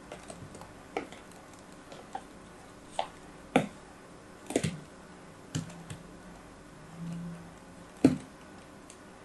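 A small knife taps and scrapes against a plastic mould.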